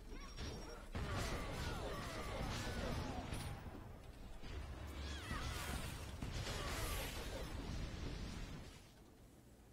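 Spell blasts crackle and whoosh loudly.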